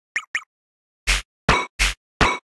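Loud electronic whooshing blips sound in a quick series.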